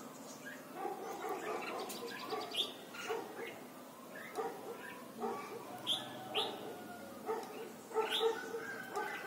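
A caged songbird chirps and sings in short, bright phrases close by.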